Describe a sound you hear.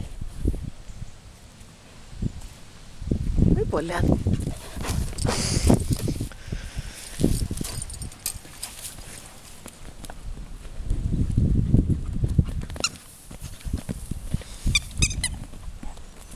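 A dog digs and scrapes in loose dirt.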